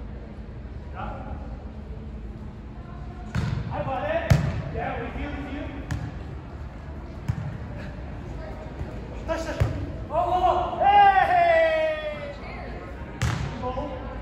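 Young men shout and call out during play.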